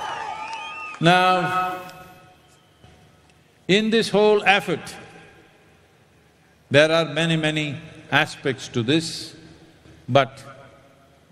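An elderly man speaks slowly through a microphone, with long pauses.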